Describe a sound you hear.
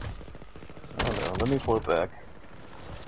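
Rapid gunshots fire close by.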